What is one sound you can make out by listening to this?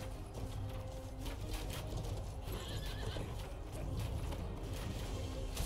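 A horse's hooves clop on cobblestones.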